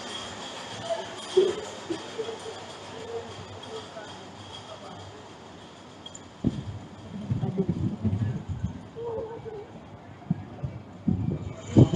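A roller coaster car rattles and rumbles along its track.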